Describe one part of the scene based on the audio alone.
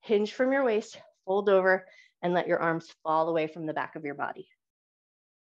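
A woman speaks calmly through a microphone, as in an online call.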